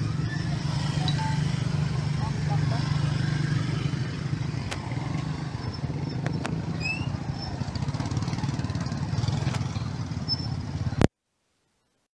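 Motorbikes and cars drive past.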